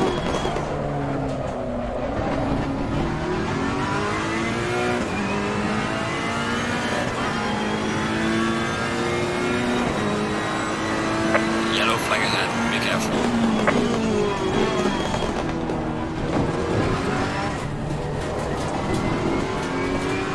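A racing car's engine roars and shifts through gears as it speeds around a track.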